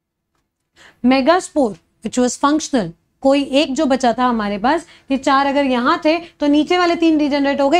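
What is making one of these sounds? A young woman speaks clearly and with animation close to a microphone.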